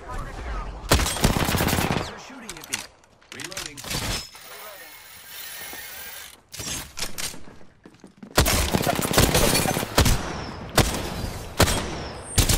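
Rapid gunfire bursts out in loud cracks.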